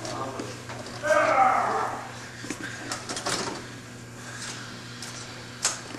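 A middle-aged man talks animatedly close by.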